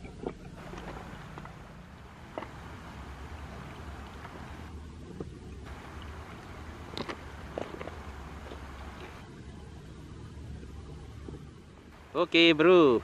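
A pot of broth simmers and bubbles over a fire.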